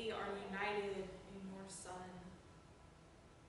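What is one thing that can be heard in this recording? A woman speaks through a microphone in a large echoing room.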